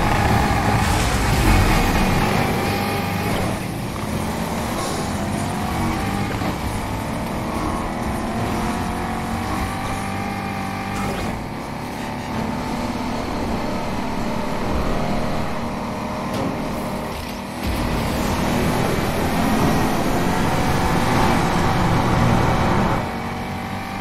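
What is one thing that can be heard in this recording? A sports car engine roars at high revs, rising and falling as it shifts gears.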